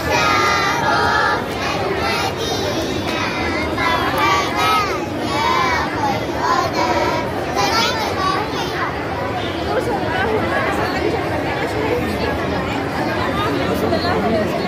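A girl speaks close by, explaining with animation.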